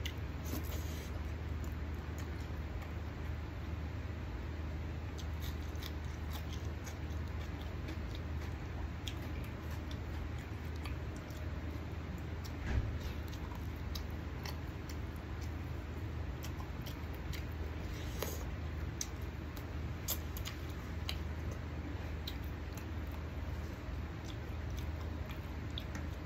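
Fingers squelch and mix rice on a plate.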